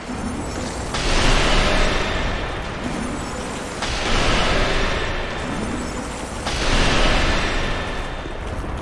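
A sword slashes with heavy whooshing blows.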